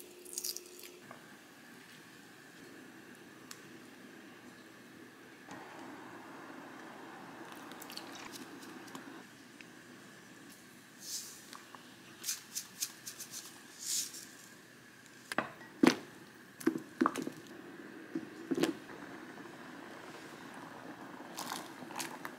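Liquid simmers and bubbles in a pan.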